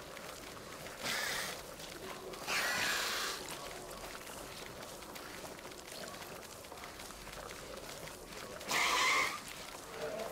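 Small predatory dinosaurs give shrill screeching calls.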